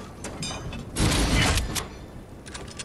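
A machine whooshes and chimes as a weapon is upgraded.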